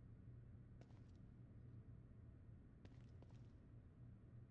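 Footsteps scuff slowly on a hard floor.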